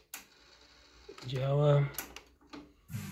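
A cassette deck button clicks.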